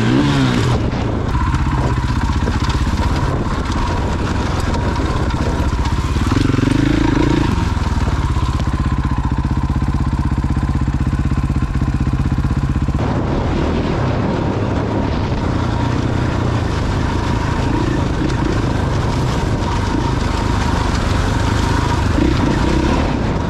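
Tyres crunch over loose gravel and rocks.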